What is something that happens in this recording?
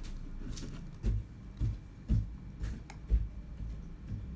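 A young woman slurps noodles close by.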